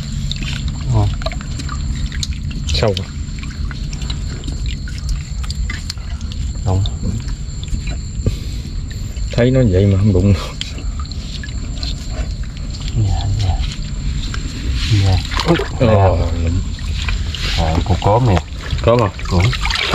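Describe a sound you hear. Wet mud squelches as a hand digs into it.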